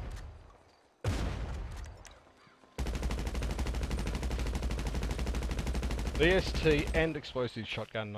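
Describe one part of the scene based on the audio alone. A gun fires in rapid bursts of shots.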